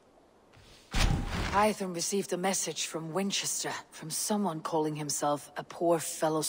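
A man speaks calmly and clearly in a low voice.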